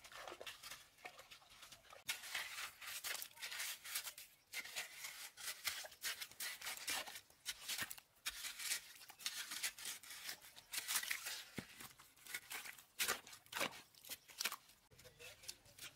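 A wooden stick squelches and tamps into wet mud around a post.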